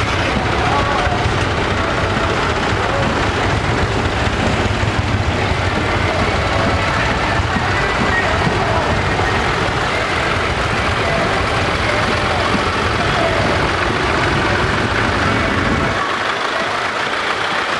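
Old tractor engines chug and rumble loudly as they drive past one after another.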